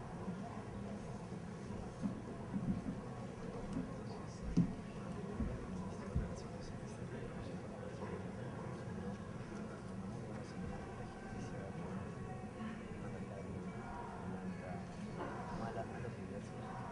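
A seated crowd of men murmurs and chatters quietly in a large room.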